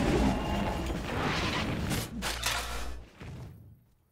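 Fighting clashes and spell blasts crackle densely.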